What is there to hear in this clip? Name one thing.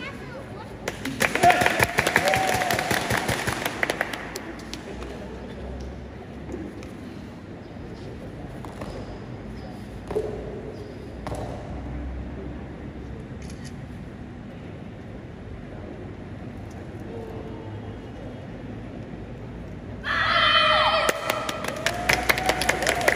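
Young women shout loudly together in an echoing hall.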